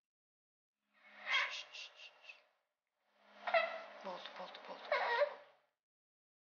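An infant babbles and fusses.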